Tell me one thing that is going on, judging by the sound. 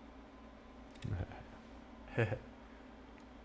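A younger man laughs nearby.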